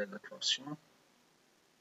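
A young man speaks briefly into a microphone, close up.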